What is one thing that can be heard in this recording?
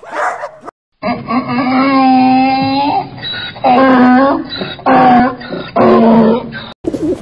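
A donkey brays loudly with rasping heaves.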